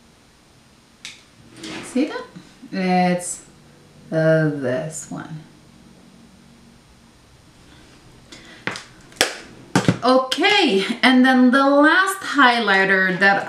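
A woman speaks calmly and close to a microphone.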